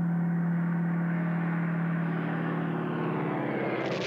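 A propeller plane's engine drones overhead.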